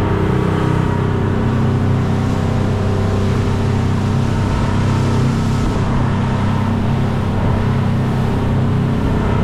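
A boat engine drones steadily at speed.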